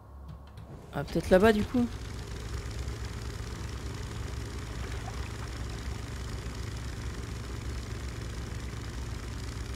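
Water churns and splashes against a moving boat.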